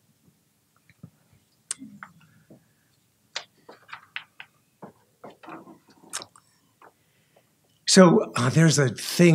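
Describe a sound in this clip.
A man reads aloud through a microphone, quietly at first and then more loudly.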